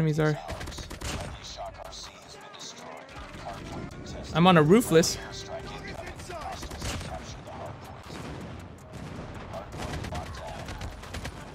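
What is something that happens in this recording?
Gunshots from a video game fire in rapid bursts.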